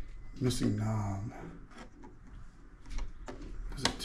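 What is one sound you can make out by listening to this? A knob on an old radio clicks as it is turned.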